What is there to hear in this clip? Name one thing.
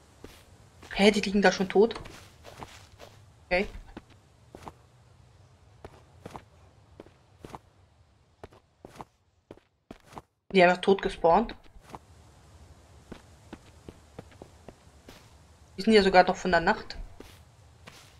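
A young woman talks through a headset microphone, in short bursts.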